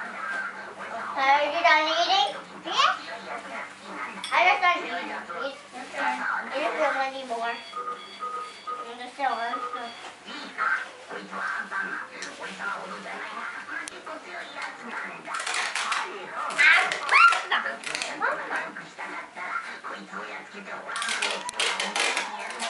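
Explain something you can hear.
A young child babbles and squeals nearby.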